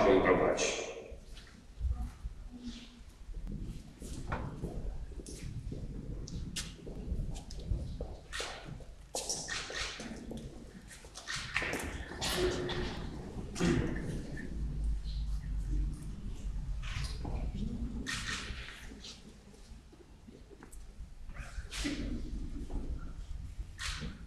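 A crowd murmurs and shuffles about in a large echoing hall.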